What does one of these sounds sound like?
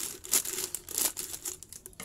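Scissors snip through plastic.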